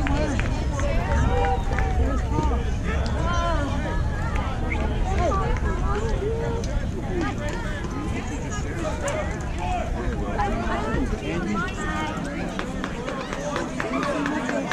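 Young girls call out and chatter across an open field.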